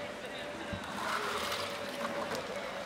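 Water splashes as a bucket is tipped out.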